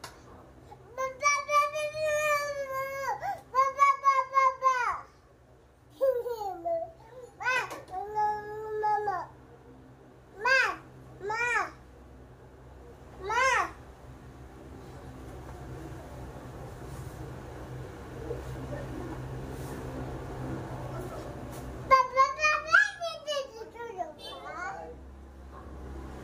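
A woman wails and sobs loudly close by, in short bursts.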